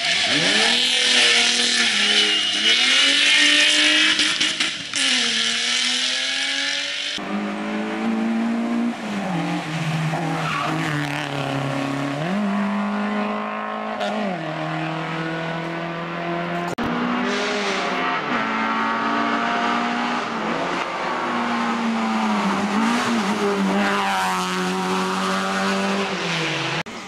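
A rally car engine roars and revs hard through gear changes.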